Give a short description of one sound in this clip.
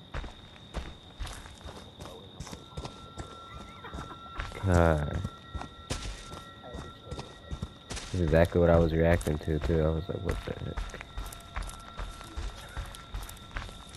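Footsteps crunch over leaves and grass at a steady pace.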